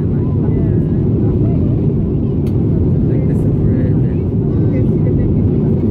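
A jet engine roars steadily from inside an airplane cabin.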